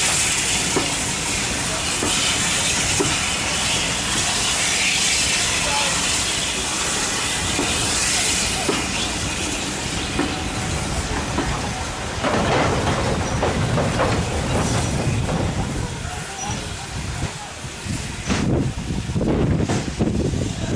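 Train carriages roll past close by, wheels rumbling and clicking over the rail joints.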